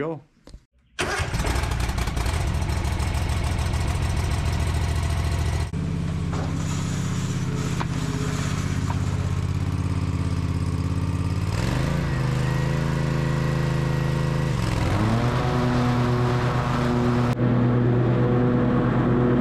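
A V-twin engine on a zero-turn mower runs and revs.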